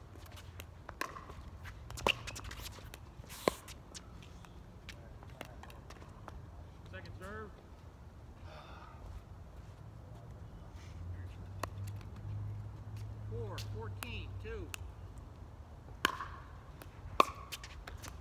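Paddles pop sharply against a plastic ball, back and forth.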